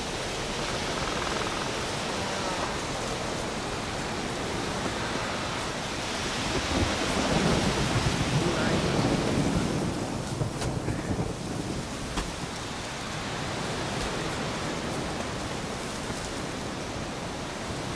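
Wind rushes steadily through trees outdoors.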